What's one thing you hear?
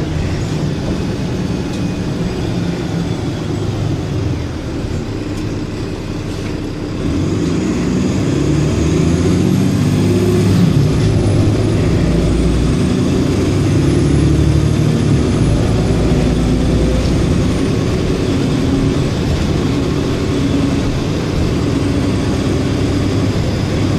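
A bus engine rumbles steadily while the bus drives along.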